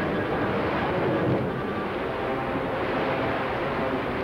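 Floodwater rushes and churns.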